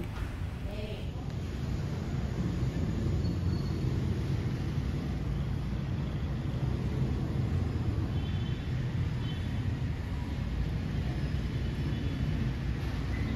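Traffic hums faintly outdoors.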